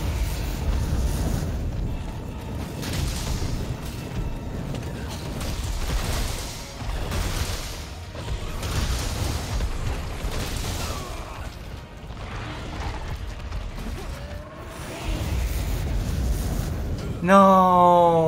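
Fiery explosions boom and crackle.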